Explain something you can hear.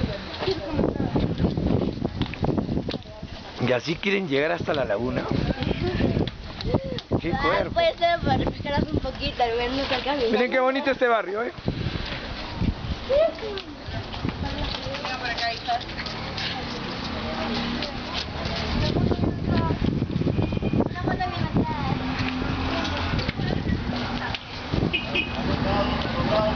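Several young people talk and call out close by outdoors.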